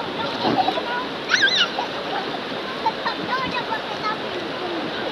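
Children splash about in the water.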